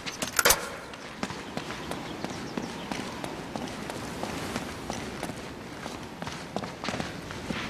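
Footsteps thud on stone steps.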